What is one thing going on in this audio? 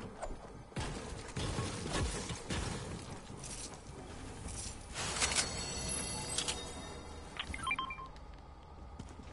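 Footsteps patter quickly across a floor.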